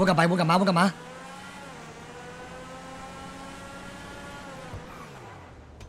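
A racing car engine roars and revs higher as the car speeds up.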